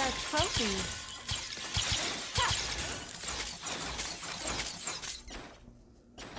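Game spell effects whoosh and clash in quick bursts.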